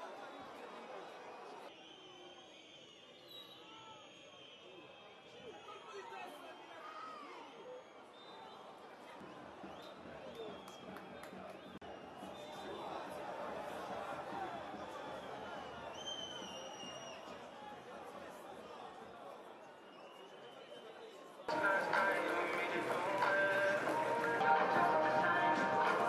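A crowd of fans shouts and cheers in an open stadium.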